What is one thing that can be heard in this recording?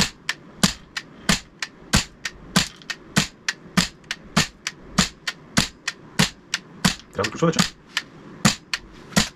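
A rifle's action clicks sharply again and again in a steady rhythm.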